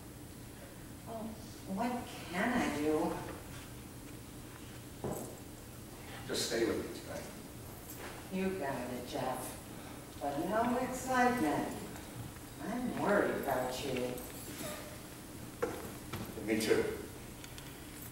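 A woman speaks calmly, heard from an audience.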